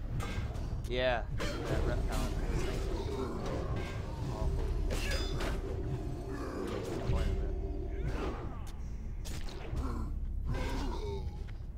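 Weapons clash and strike in a game battle.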